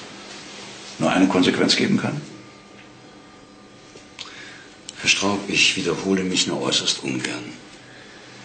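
An older man speaks firmly nearby.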